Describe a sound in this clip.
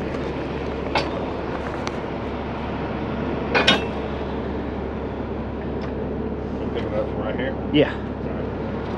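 Heavy metal parts clank and bang.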